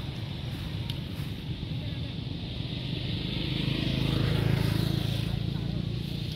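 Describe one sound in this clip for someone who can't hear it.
A small monkey rustles through the grass.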